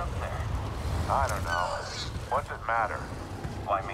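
A large winged creature screeches in short, warbling cries.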